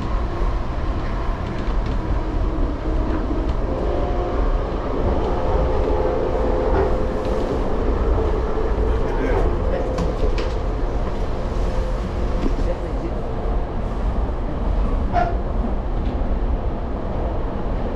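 A train rumbles steadily along the tracks, heard from inside the carriage.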